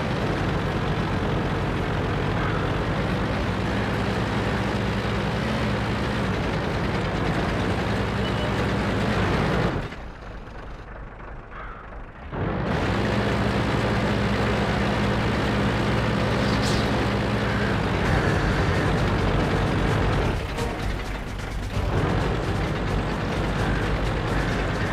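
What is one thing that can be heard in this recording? Tank tracks clatter along.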